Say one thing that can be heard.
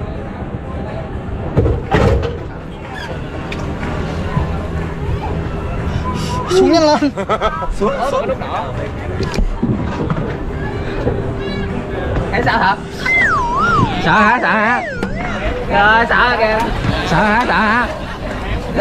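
A roller coaster rumbles and clatters along its track.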